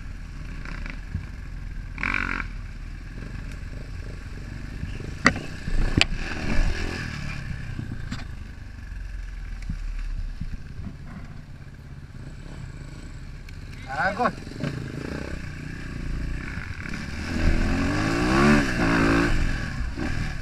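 Another dirt bike engine revs nearby and rises in pitch as it passes.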